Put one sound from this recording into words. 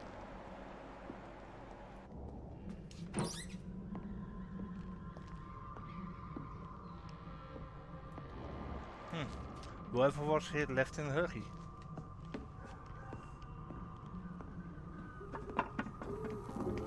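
Footsteps thud slowly on wooden floorboards.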